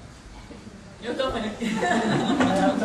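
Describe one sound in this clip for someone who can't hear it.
Several people talk and laugh at once.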